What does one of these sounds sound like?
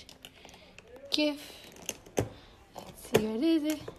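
Metal latches on a case click open.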